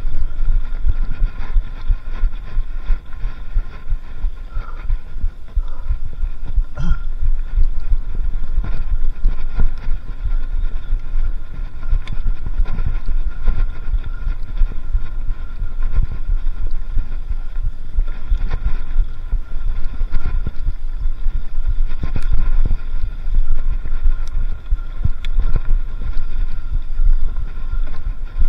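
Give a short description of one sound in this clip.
Bicycle tyres rattle and crunch over a bumpy dirt trail.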